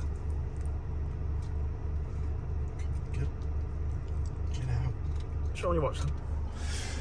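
Keys jingle and click in a man's hands.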